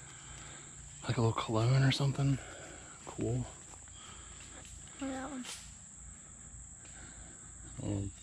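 A young boy speaks up close.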